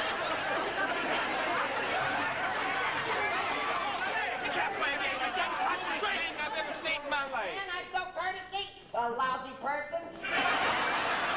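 Several men talk loudly over one another.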